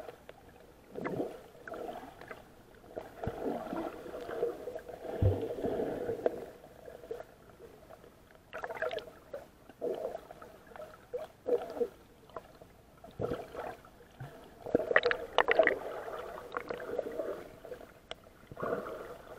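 A swimmer kicks and splashes at the surface, heard muffled from below.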